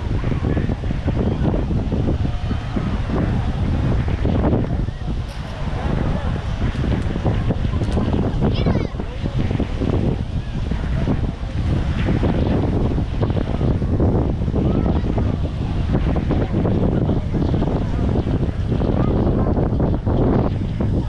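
Wind blusters loudly against the microphone outdoors.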